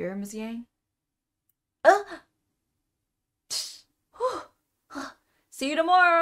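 A young woman reads out lines with animation through a microphone, in bursts with pauses.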